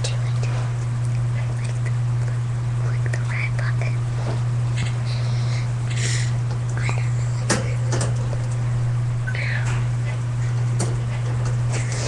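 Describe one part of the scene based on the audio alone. A young child talks softly nearby.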